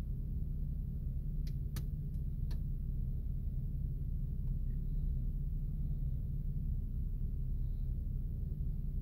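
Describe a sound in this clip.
Strong wind rumbles and buffets steadily outdoors.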